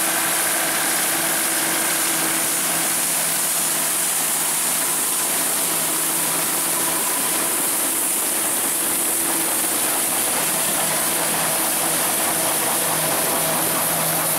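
A combine harvester's engine drones steadily up close.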